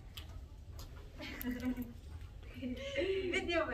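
Young women chatter and laugh in the background.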